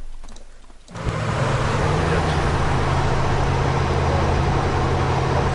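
A heavy military vehicle's engine rumbles steadily as it drives.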